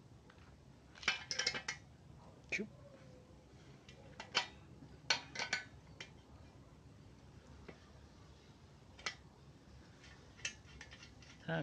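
Metal parts of a bicycle click and rattle under a person's hands.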